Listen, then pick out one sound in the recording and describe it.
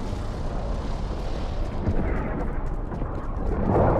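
Footsteps thud quickly on wooden stairs.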